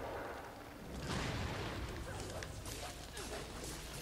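A huge creature's heavy blows thud and crash.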